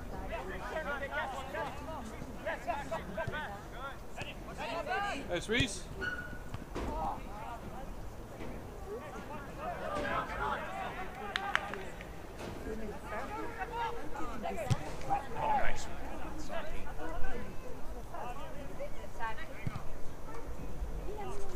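Young men shout and call to each other across an open outdoor field.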